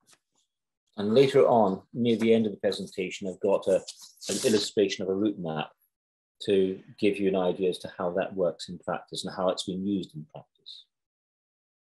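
An older man speaks calmly into a microphone over an online call.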